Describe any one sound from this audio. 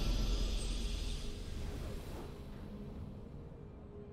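A triumphant fanfare rings out and slowly fades.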